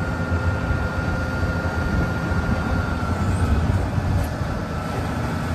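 Hydraulics whine as a dump truck's bed lowers.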